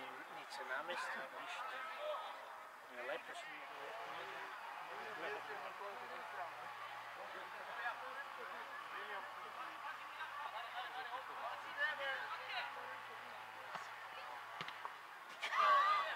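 Young men call out to one another from a distance on an outdoor football pitch.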